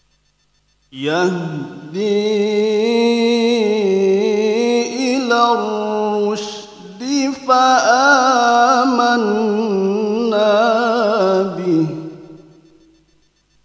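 A man chants melodiously into a microphone.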